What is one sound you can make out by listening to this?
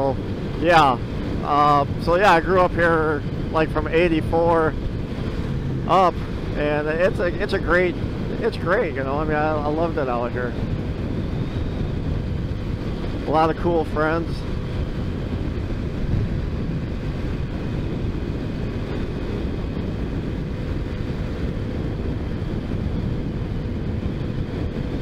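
Wind rushes steadily past the rider.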